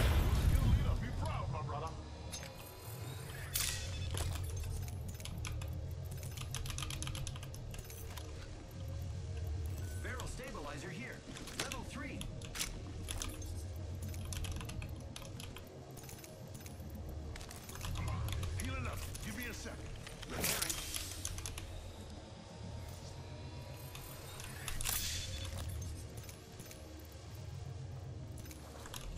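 Keys on a keyboard click and clatter.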